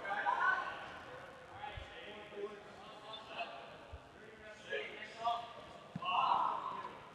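Young men shout to each other across a large echoing gym.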